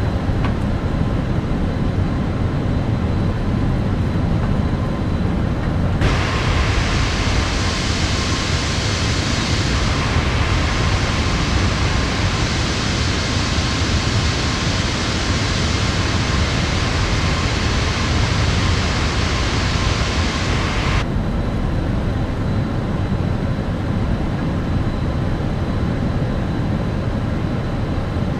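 Jet engines hum in a low, steady drone from inside a cockpit.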